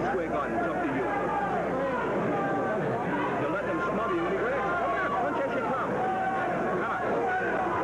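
A man shouts a count loudly and close by.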